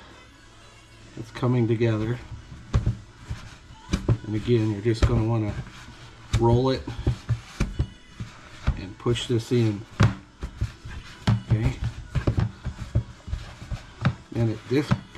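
Hands squish and knead soft dough in a plastic bowl.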